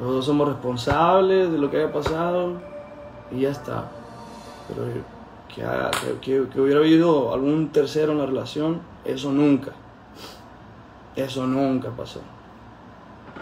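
A young man talks calmly into a phone microphone, close by.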